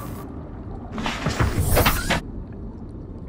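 A hatch clunks and whooshes as a small submarine is entered.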